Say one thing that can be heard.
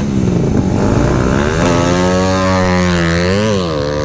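A small motorcycle pulls away.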